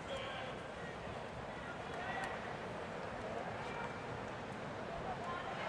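A crowd murmurs softly in a large open stadium.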